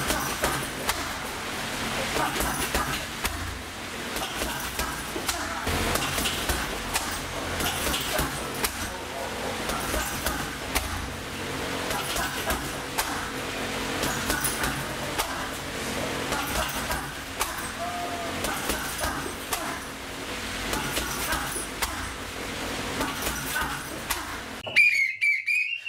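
Punches and kicks thump against a heavy bag.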